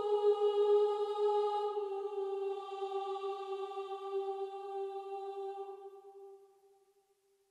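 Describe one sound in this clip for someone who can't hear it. A synthetic choir sings a sustained chord that slowly fades away.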